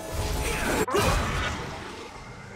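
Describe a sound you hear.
Magic spell effects from a video game whoosh and crackle loudly, then fade.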